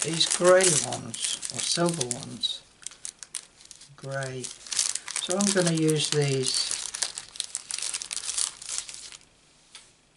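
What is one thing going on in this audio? A plastic sheet rustles and crinkles close by.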